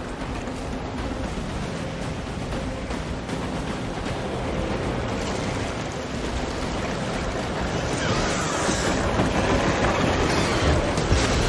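A dense swarm of winged creatures roars and screeches.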